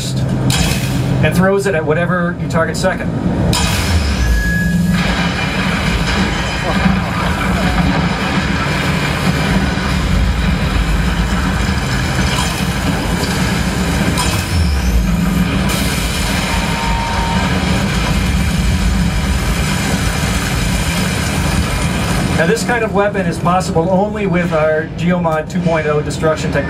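Video game gunfire and explosions boom loudly through loudspeakers.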